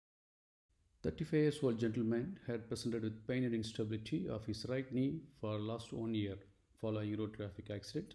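A man speaks calmly through a microphone, explaining at an even pace.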